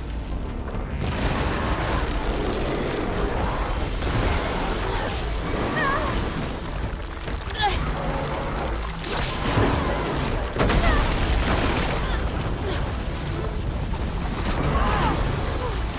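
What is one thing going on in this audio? A large mechanical beast growls and roars.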